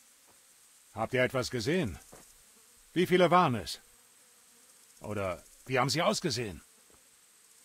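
A man asks several questions in a row.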